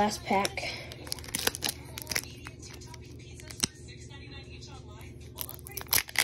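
A foil wrapper crinkles as fingers tear open a pack.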